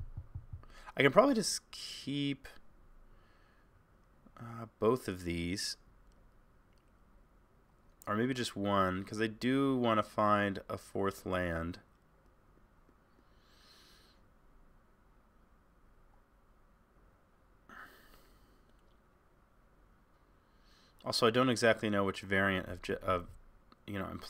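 A man talks into a close microphone in short bursts, calmly and with animation.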